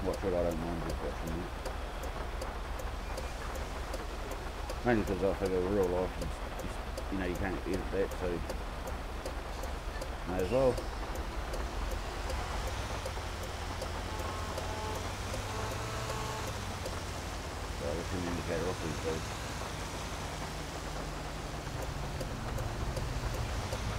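A fire truck engine rumbles steadily as the truck drives along.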